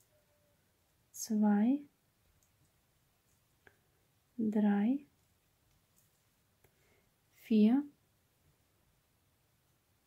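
Yarn rustles softly as it is looped onto a crochet hook.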